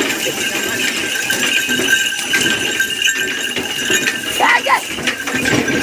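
Small bells jingle on a bullock's collar.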